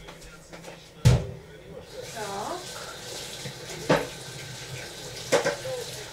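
Dishes clink and knock at a sink.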